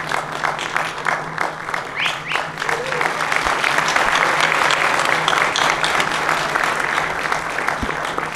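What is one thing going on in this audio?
An audience claps and applauds steadily, growing louder.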